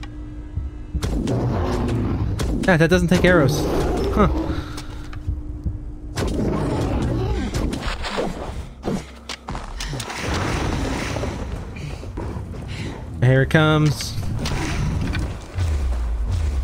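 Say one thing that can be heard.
Game combat sounds clash and thud with loud impacts.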